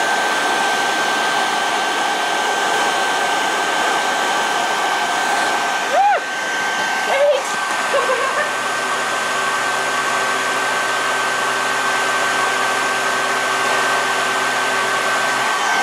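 A hair dryer blows with a steady whooshing roar.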